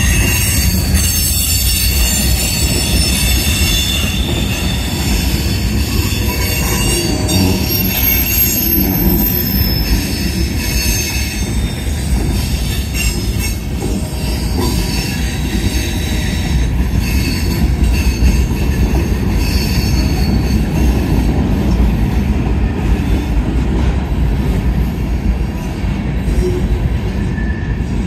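Steel wheels squeal and screech on the rails.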